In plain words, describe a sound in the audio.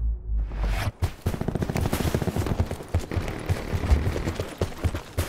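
Quick footsteps thud over hard ground.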